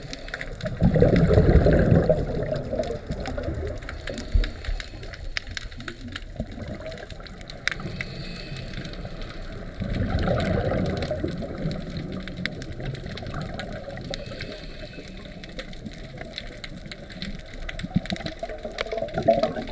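Water rumbles and crackles in a muffled way, as heard underwater.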